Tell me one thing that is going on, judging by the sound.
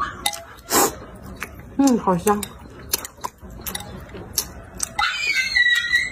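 A young woman chews food noisily with her mouth open.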